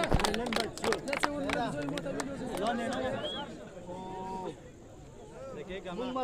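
A crowd of young men shout and cheer loudly nearby.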